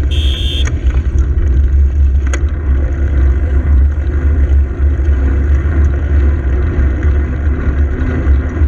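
Wind buffets the microphone steadily as a bicycle rides along.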